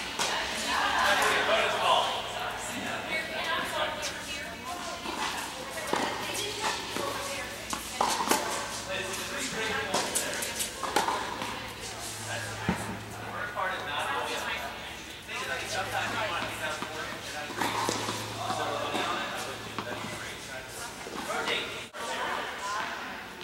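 Tennis rackets hit a ball in a large echoing indoor hall.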